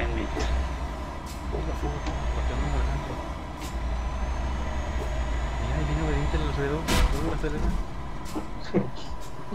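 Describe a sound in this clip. A truck engine rumbles low and steady, then fades.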